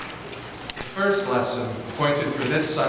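A young man speaks calmly into a microphone in an echoing hall.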